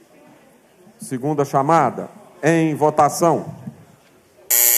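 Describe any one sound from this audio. A man speaks firmly into a microphone over loudspeakers.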